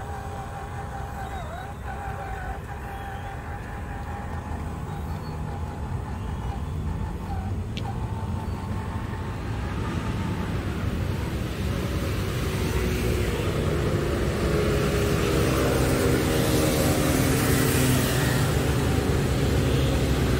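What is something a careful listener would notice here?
Small plastic tyres rumble over a wooden surface.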